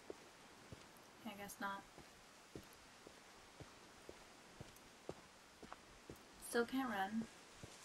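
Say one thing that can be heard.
Footsteps swish and thud through tall grass at a steady walking pace.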